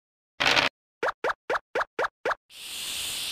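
Short bright blips sound in quick succession as game pieces hop along a board.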